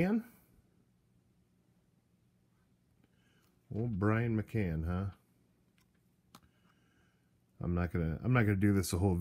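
Trading cards slide and flick softly against each other.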